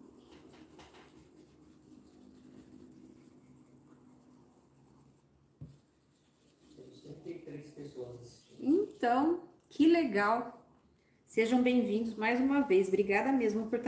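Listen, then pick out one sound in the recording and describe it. A brush dabs and scrubs softly on paper.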